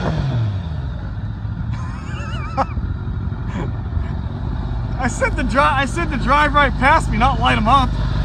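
The inline-four motorcycle engine of a three-wheeled roadster idles.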